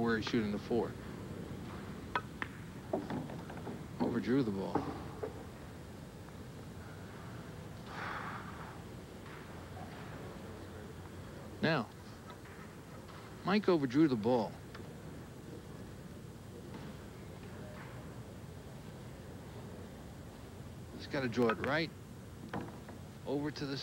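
A cue stick strikes a ball with a sharp click.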